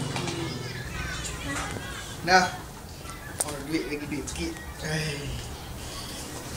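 A boy talks and laughs nearby.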